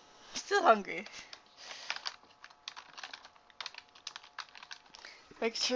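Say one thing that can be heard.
Keys on a keyboard click as someone types.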